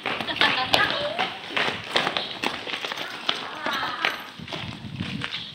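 Several girls run quickly, their footsteps slapping on pavement.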